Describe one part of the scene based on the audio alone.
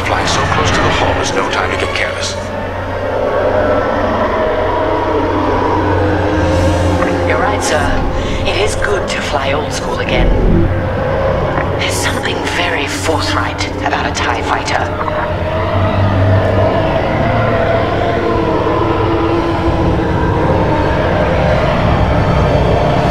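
A TIE fighter's engine roars in flight.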